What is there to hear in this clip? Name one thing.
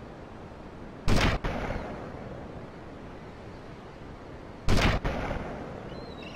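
A rifle fires two loud, sharp shots that echo away.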